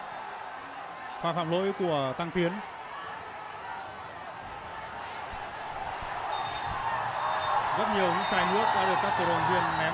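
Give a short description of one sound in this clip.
A large stadium crowd roars steadily, growing louder toward the end.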